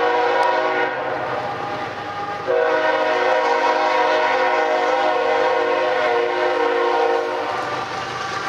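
A train horn blares loudly nearby.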